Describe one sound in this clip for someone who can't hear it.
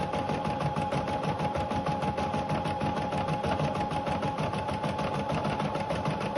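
An embroidery machine stitches with a fast, steady rattling hum.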